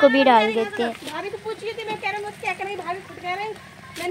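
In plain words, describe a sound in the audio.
Liquid splashes as it pours into a pot.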